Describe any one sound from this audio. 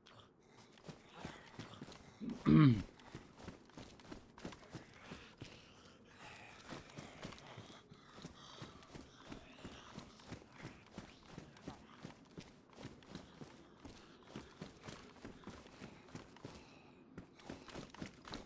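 Footsteps thud steadily on a hard floor and stairs.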